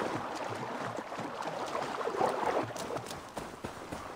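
Footsteps splash through shallow water and rustle through reeds.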